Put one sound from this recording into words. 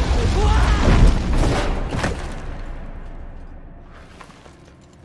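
A loud crash booms and rumbles, then slowly fades.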